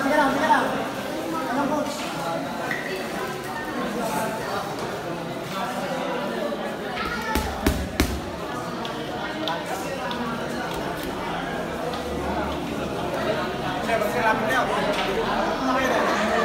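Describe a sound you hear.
A man speaks loudly with animation, addressing a crowd in a large echoing hall.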